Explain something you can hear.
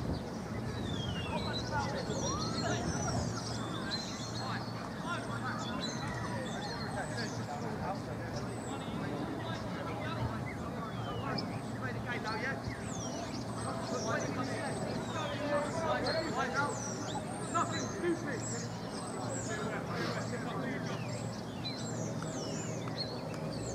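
Men shout and call out at a distance across an open field.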